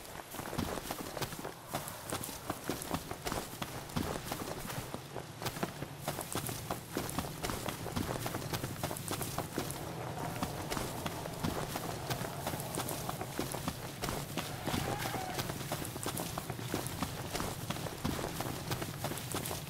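Quick footsteps run through rustling grass.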